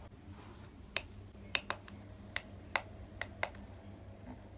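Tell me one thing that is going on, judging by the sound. A button on a humidifier clicks several times.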